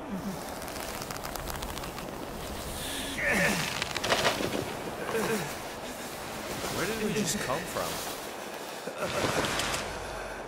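Footsteps crunch on loose stones.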